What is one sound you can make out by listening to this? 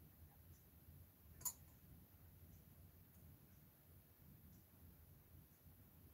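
A paintbrush taps and brushes softly against a hard surface.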